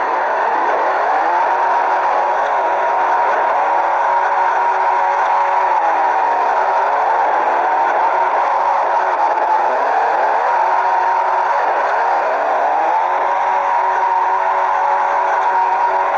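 A car engine revs high, rising and falling with gear changes.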